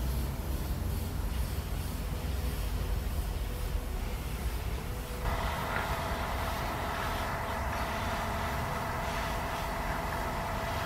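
An airbrush hisses softly as it sprays.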